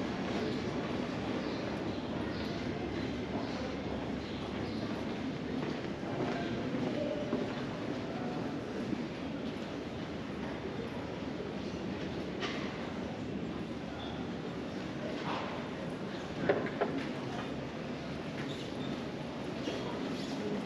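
A steady outdoor hum of a quiet town street.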